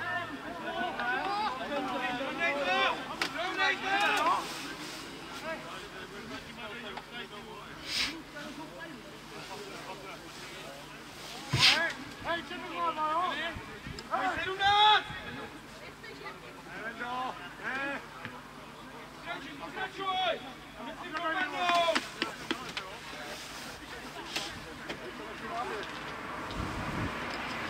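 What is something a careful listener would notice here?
Young men shout and call to each other across an open playing field.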